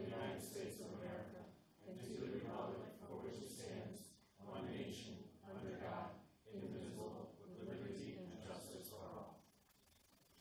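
A group of people recite together in a large room, in unison.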